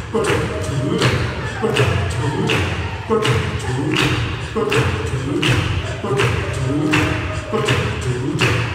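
Feet stamp rhythmically on a wooden stage.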